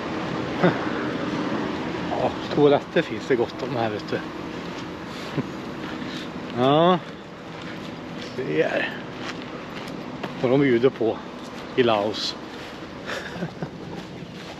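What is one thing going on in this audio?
A man talks with animation close to a microphone, outdoors.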